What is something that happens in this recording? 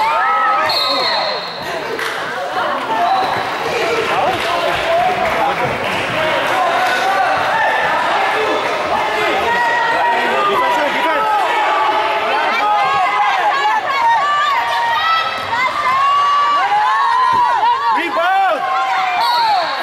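Sneakers squeak sharply on a hard gym floor in a large echoing hall.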